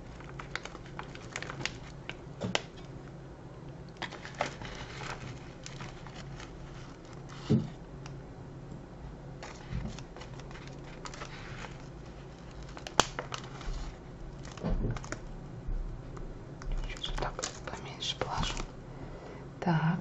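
A foil packet crinkles and rustles.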